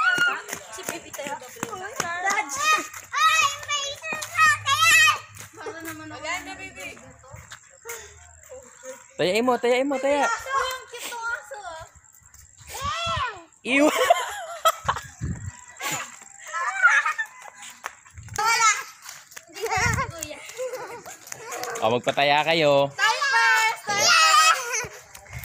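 Children shout and squeal excitedly nearby, outdoors.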